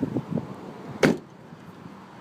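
A car trunk lid slams shut with a loud thud.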